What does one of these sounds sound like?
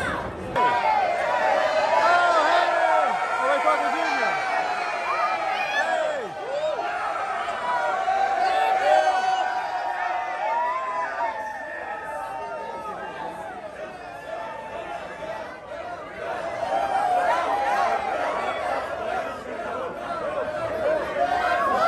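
A crowd of excited fans screams and cheers loudly in an echoing hall.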